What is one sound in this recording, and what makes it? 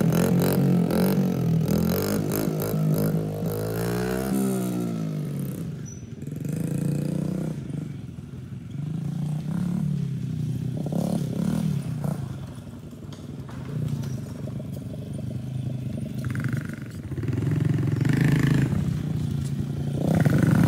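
A small engine hums and revs as a child rides a quad bike.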